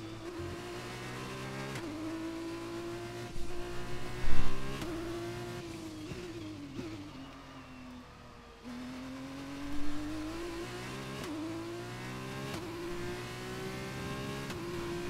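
A racing car engine screams loudly, rising and dropping in pitch as gears shift.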